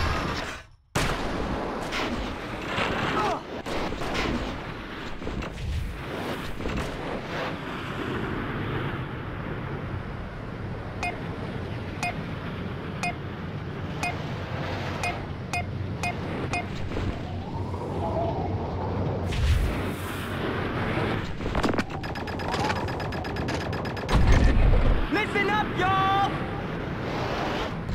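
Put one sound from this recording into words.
A snowboard carves and hisses over snow at speed.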